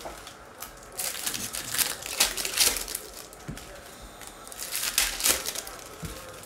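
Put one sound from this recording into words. A foil wrapper crinkles and rustles as hands tear it open.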